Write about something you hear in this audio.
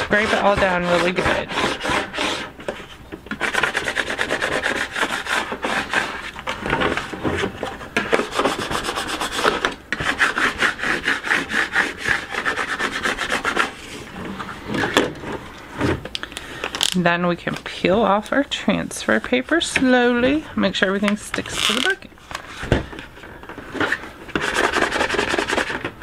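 A plastic squeegee scrapes firmly across a sheet of vinyl.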